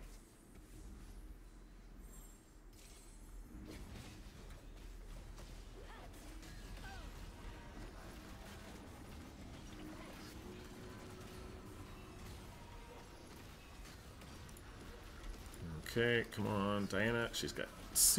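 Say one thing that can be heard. Game battle effects clash and whoosh with magic blasts.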